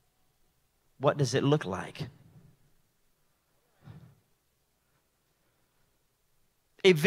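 A man speaks into a microphone over loudspeakers in a large hall, pausing between phrases.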